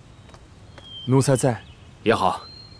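A young woman answers softly.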